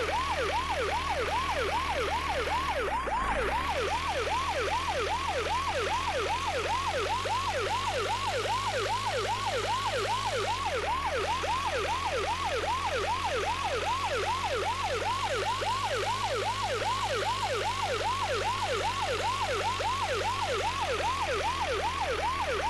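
A vehicle engine hums low and steady.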